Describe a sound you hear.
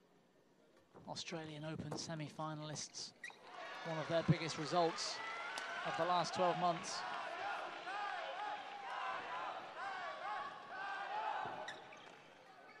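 A crowd cheers and applauds in a large echoing hall.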